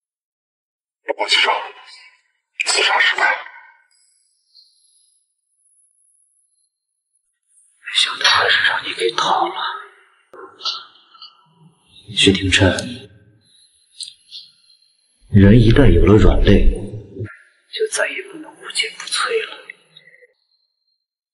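A young man speaks calmly and quietly, close by.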